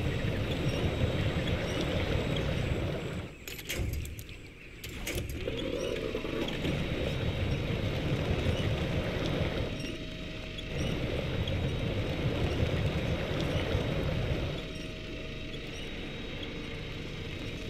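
Water sloshes and splashes around truck tyres.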